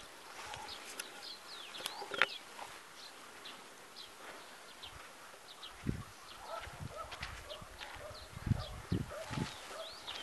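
Footsteps crunch on a dry dirt road.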